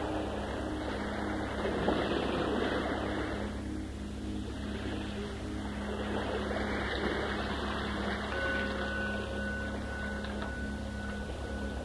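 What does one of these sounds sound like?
Water falls and splashes steadily.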